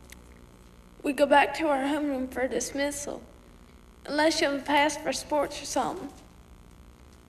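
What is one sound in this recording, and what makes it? A young woman speaks tearfully and shakily, close by.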